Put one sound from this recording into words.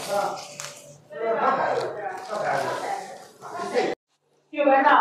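Plastic packaging crinkles and rustles as a hand handles it.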